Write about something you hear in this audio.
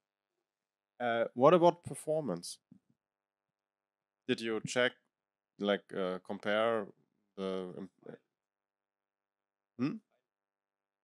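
A young man speaks calmly into a microphone with pauses, heard through a loudspeaker.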